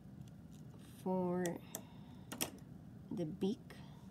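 A plastic pen is set down on a table with a light tap.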